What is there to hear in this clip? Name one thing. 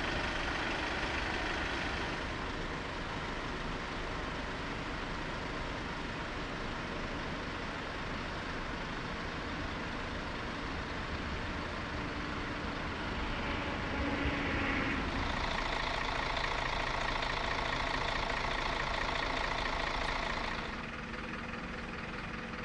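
Vehicle engines idle steadily outdoors.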